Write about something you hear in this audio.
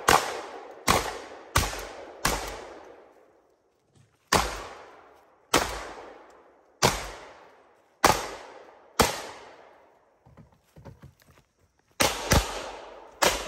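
Loud pistol shots ring out one after another outdoors, each echoing through the woods.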